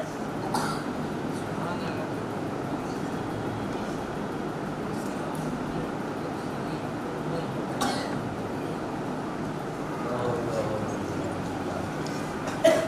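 A crowd of men murmur a prayer together in a large room.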